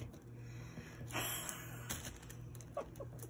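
A plastic bread bag crinkles and rustles.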